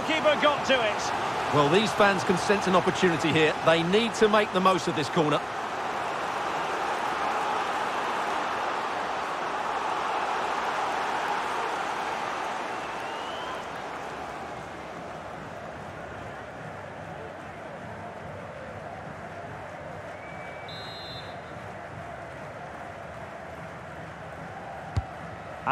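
A large stadium crowd roars and then slowly quiets to a steady murmur.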